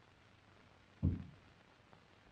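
A door shuts with a dull thud.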